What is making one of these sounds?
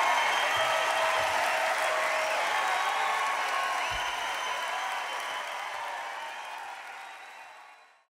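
A large crowd cheers and applauds in a big echoing hall, slowly fading away.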